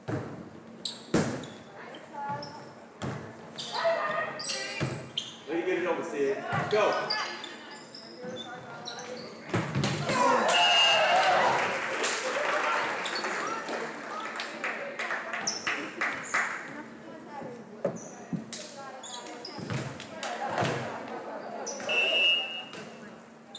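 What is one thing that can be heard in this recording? A volleyball is hit with sharp smacks in a large echoing gym.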